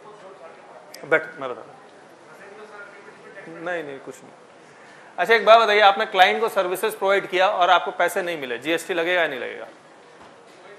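A young man speaks up close.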